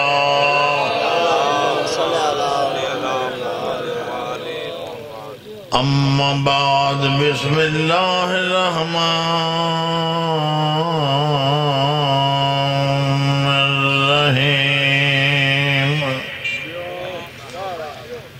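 A man chants and recites with strong feeling through a microphone and loudspeakers.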